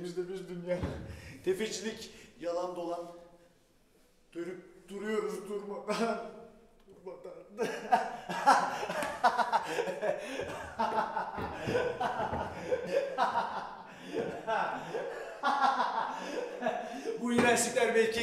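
A young man cries out and speaks with strong emotion, in a large room with some echo.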